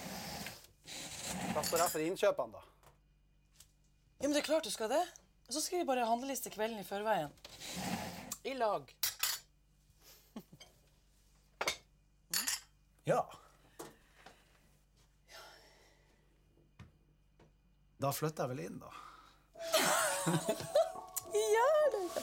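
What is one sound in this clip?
A woman speaks softly and calmly close by.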